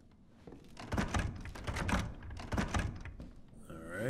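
A wooden door creaks as it is pushed open.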